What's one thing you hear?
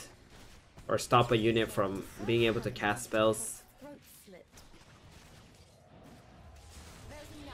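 Battle sound effects clash and whoosh from a game.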